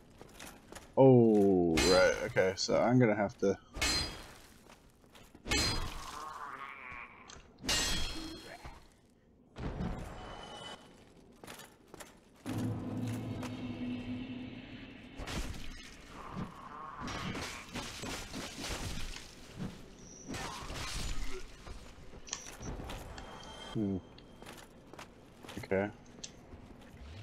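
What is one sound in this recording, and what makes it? Armour clanks with footsteps on stone.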